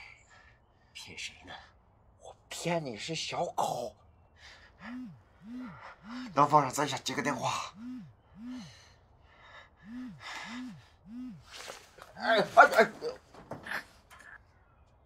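A man groans and grunts in pain, close by.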